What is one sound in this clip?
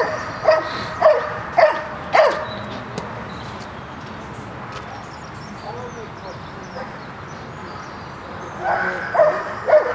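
A dog barks in sharp bursts outdoors.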